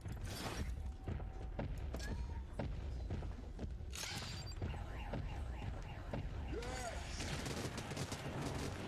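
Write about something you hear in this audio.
Electronic bleeps and zaps sound from a video game.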